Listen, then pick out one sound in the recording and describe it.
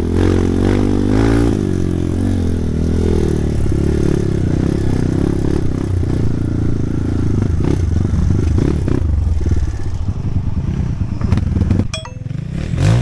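A dirt bike engine drones steadily up close as the bike rides along.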